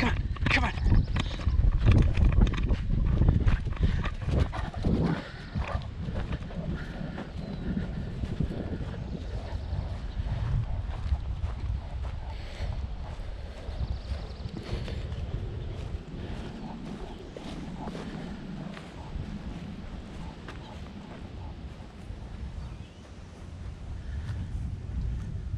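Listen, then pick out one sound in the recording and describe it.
A dog's paws patter on dry ground.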